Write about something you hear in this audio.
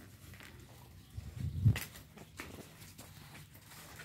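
Puppies suckle and smack noisily.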